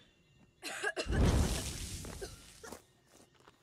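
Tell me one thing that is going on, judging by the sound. A heavy wooden door bangs open with a loud thud.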